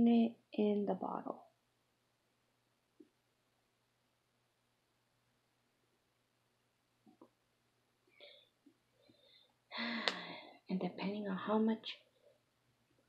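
A young woman talks casually close to the microphone.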